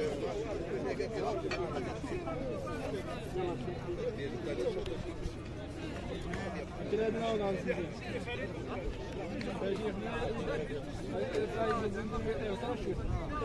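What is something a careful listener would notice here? Several men talk with each other outdoors, close by.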